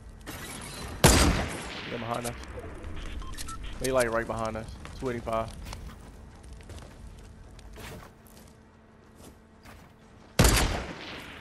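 A sniper rifle fires loud, echoing shots.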